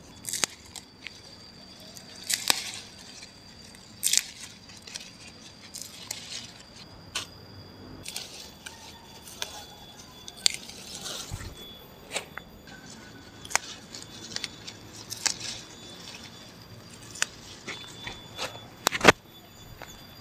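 Leaves rustle and stems snap as vegetables are picked by hand.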